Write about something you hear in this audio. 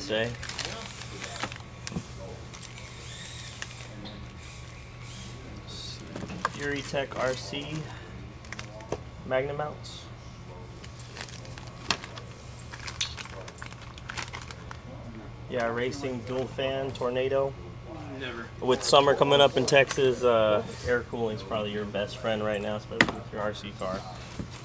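Cardboard and plastic packaging rustle and crinkle.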